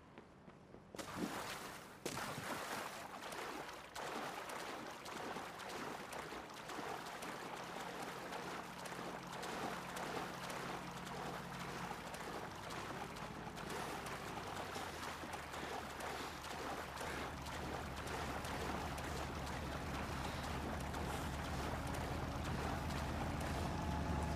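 Water sloshes and splashes as a swimmer moves through it.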